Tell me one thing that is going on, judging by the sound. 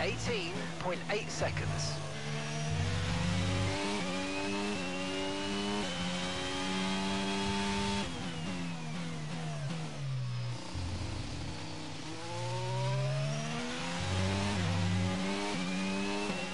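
A racing car engine screams, rising in pitch through the gears and dropping when braking into corners.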